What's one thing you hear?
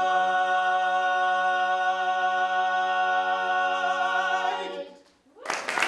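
A group of men sing a held chord together in close harmony.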